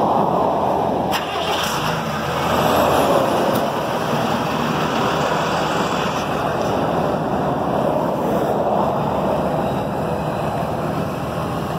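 Cars rush past on a nearby road.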